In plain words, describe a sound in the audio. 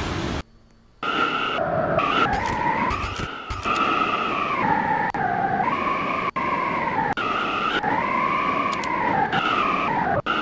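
A subway train's electric motor whines, rising and falling in pitch.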